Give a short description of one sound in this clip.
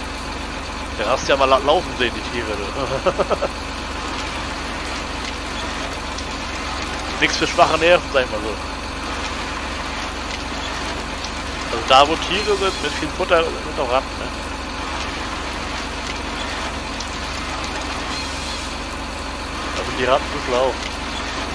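A forestry machine's engine hums steadily.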